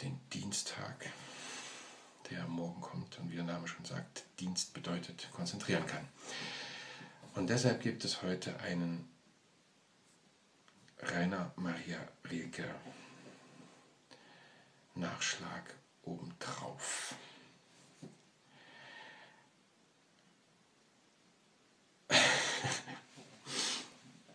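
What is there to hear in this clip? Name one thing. A middle-aged man talks calmly and close up into a webcam microphone, with pauses.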